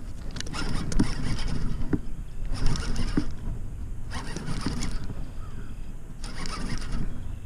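A fishing reel clicks and whirs as its handle is cranked in bursts.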